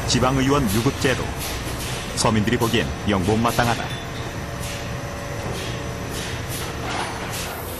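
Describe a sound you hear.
Machinery hums steadily in a large room.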